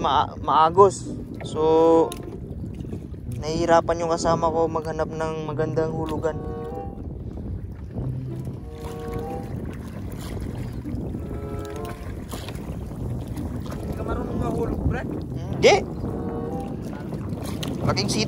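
Water laps against a small boat.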